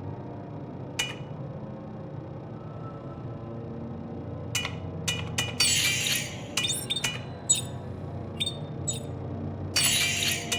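Short electronic menu beeps and clicks sound as selections change.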